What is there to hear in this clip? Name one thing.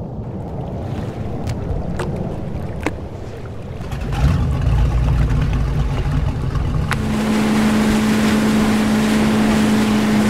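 A boat engine rumbles and hums steadily.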